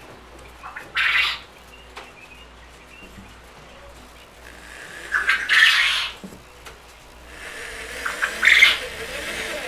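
A cordless drill whirs in short bursts, boring into foam board.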